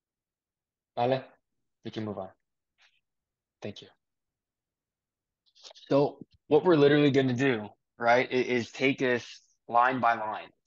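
A man talks through an online call, speaking calmly.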